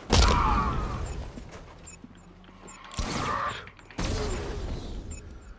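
Heavy punches and kicks land with thuds in a fight.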